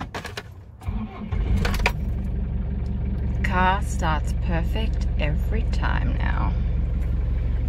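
A car engine starts and idles with a steady low hum.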